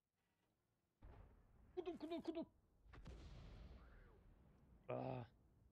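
A tank cannon fires with a deep boom.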